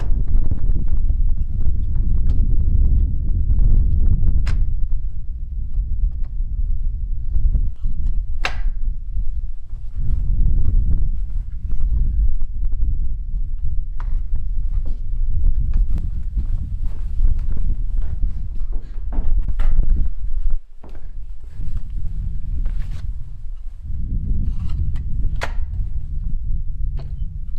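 Wooden folding furniture knocks and clatters as it is unfolded and set down.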